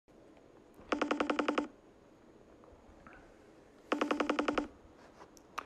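A phone ringtone trills in quick pulsing bursts.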